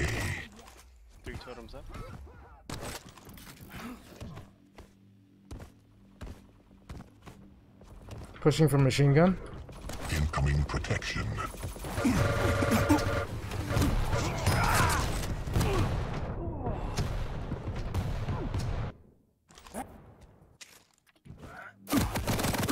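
Weapons fire rapidly in a video game.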